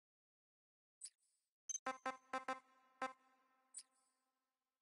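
Short electronic menu beeps chirp in quick succession.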